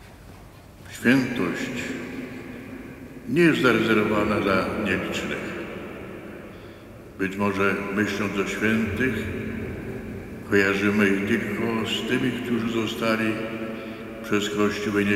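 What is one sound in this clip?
An elderly man chants slowly through a microphone in a large echoing hall.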